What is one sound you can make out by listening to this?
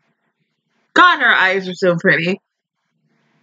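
A young woman speaks briefly and cheerfully, close to the microphone.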